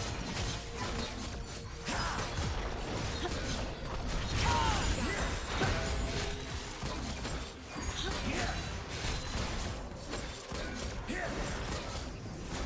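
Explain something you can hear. Weapons strike in quick, repeated hits.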